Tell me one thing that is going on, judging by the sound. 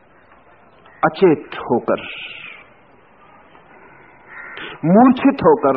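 An elderly man speaks slowly and expressively, close to a microphone.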